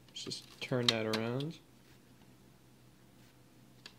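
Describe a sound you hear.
A disc clicks as it is pried off its holder.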